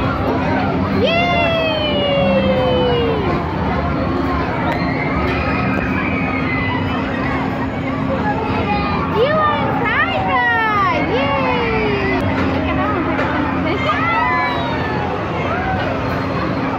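Young children squeal with excitement now and then.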